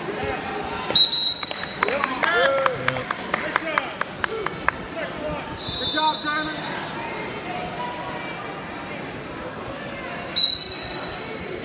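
A referee blows short whistle blasts in a large echoing hall.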